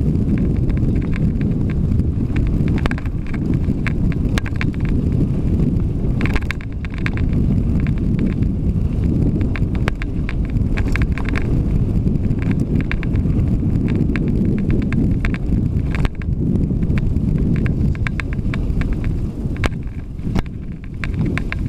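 Wind rumbles loudly past the rider.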